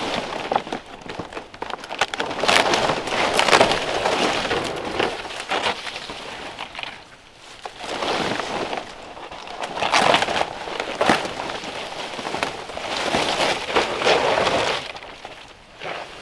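Large dry palm leaves rustle and scrape as they are gathered and bundled.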